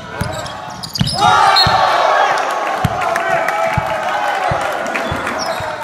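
Spectators cheer loudly after a basket.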